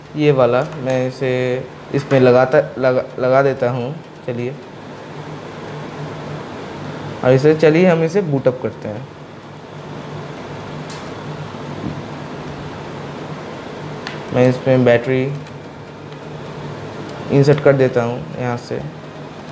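Plastic phone parts click softly as hands handle them.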